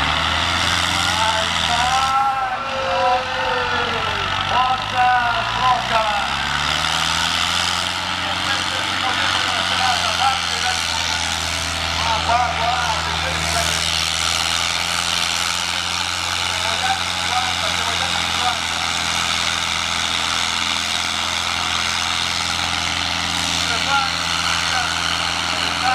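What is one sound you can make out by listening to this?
A tractor engine roars steadily under heavy load.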